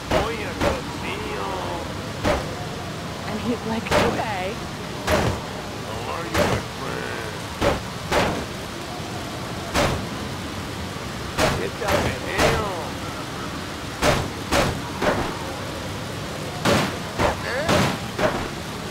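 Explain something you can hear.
Heavy blows thud and bang against a car's metal body.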